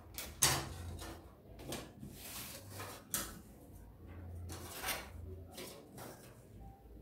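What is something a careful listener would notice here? Fabric rustles as hands smooth and handle it.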